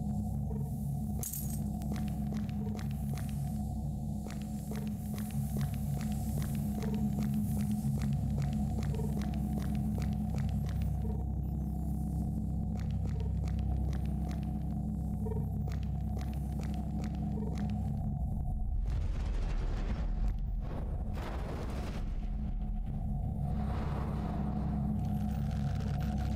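A low mechanical hum drones throughout.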